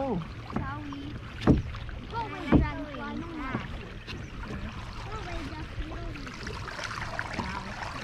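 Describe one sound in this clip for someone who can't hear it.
A paddle dips and splashes in calm water.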